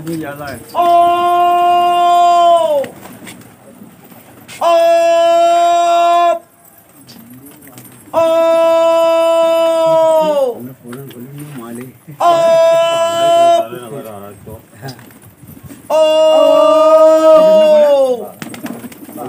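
A man calls out nearby in long, loud, drawn-out cries, again and again.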